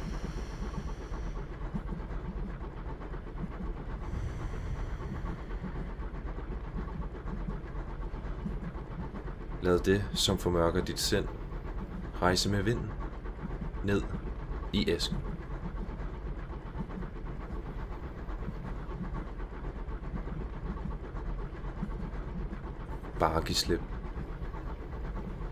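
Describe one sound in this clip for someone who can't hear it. A train rumbles along on rails.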